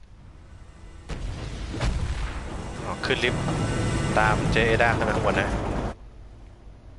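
A loud explosion roars and rumbles on.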